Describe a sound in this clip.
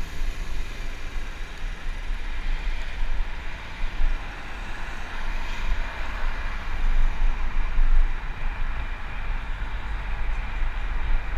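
Car engines hum nearby.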